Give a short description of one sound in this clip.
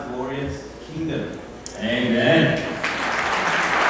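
A man speaks calmly into a microphone, close and amplified.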